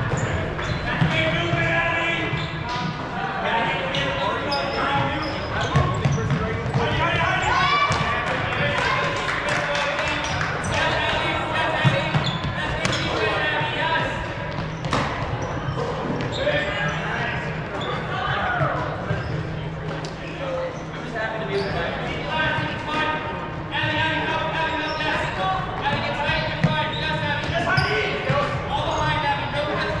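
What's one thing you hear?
Young people shout and call out in a large echoing hall.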